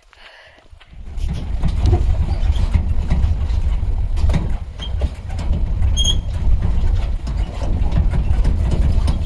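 A vehicle engine rumbles loudly and rattles along.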